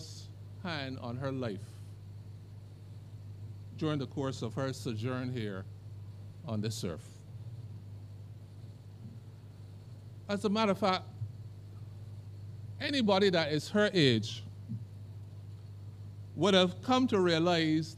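An elderly man speaks slowly and calmly into a microphone, with pauses between phrases.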